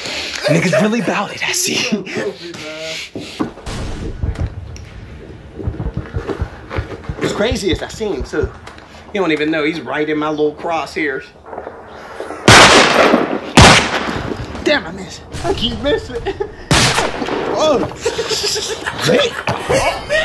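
Two young men laugh heartily nearby.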